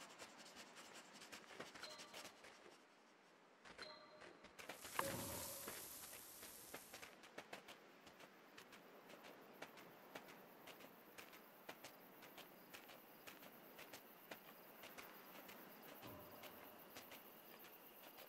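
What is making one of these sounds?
A fox's paws crunch quickly through snow.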